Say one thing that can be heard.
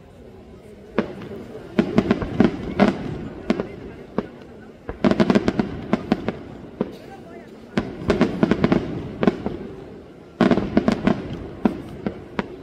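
Firecrackers crackle in rapid bursts.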